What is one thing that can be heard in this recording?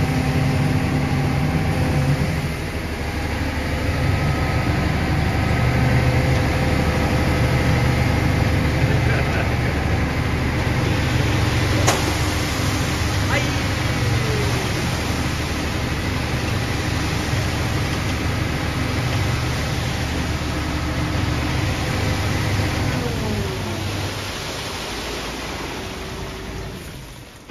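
Wet concrete pours and slops down a chute into a bucket.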